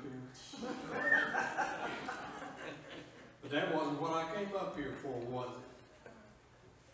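A man speaks calmly into a microphone in a large echoing room.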